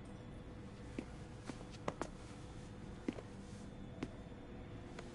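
Hands pat a man's back a few times.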